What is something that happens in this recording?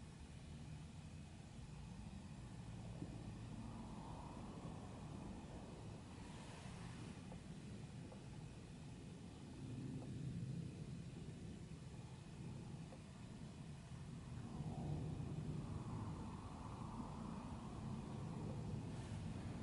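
A man murmurs softly, heard from a distance.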